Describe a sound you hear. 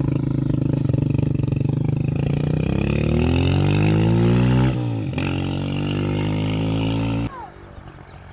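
A motorcycle engine revs loudly nearby and then fades as it rides away.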